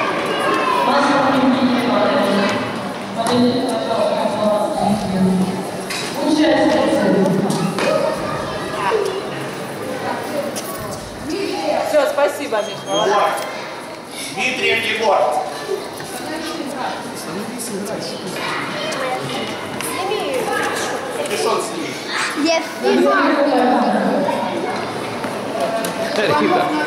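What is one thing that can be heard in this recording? A crowd of adults and children murmurs and chatters in a large echoing hall.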